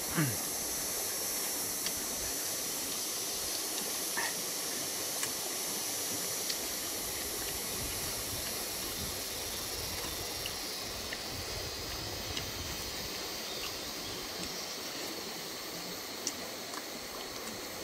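Insects buzz steadily outdoors.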